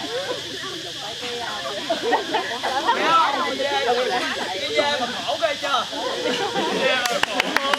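Young men and women chatter nearby.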